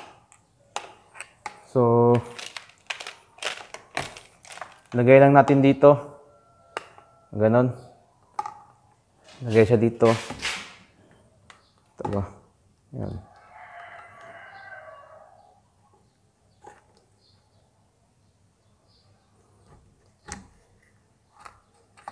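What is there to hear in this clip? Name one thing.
Plastic parts click and clack as they are fitted together.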